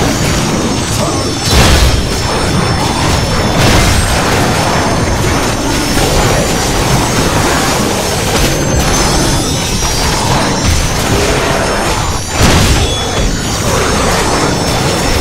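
Heavy blows thud against a large creature.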